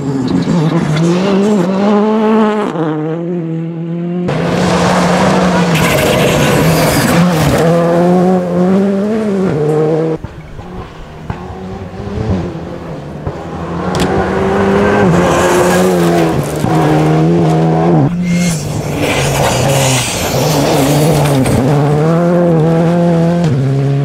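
Tyres spray and crunch over loose gravel.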